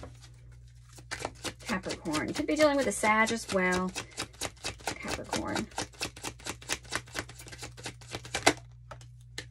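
Cards are shuffled with rapid soft clicks.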